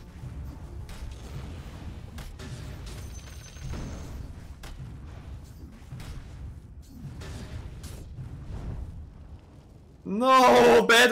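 Fantasy battle sound effects clash and thud in quick bursts.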